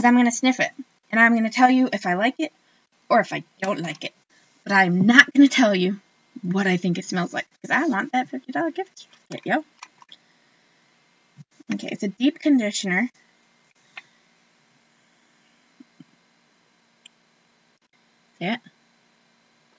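A woman talks casually and close up, with pauses.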